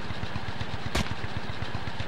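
A silenced rifle fires a single muffled shot.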